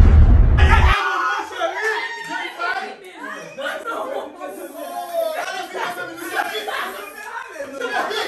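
A group of young women chatter and laugh.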